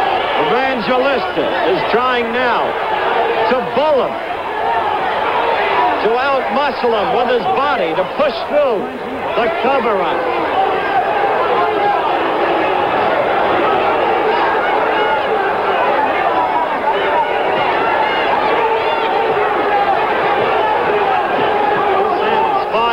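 A large crowd roars and cheers loudly throughout.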